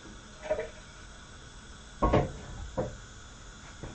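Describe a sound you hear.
A man clatters dishes close by.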